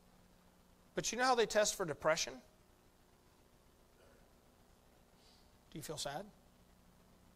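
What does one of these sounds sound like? A middle-aged man speaks with emphasis through a microphone in a large room.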